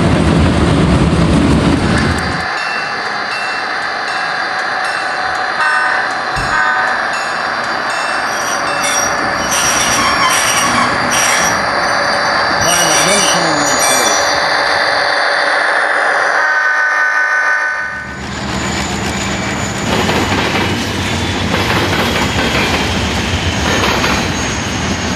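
A model train rumbles and hums along its track.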